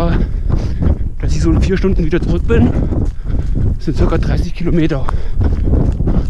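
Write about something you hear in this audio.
A man talks breathlessly close to a microphone.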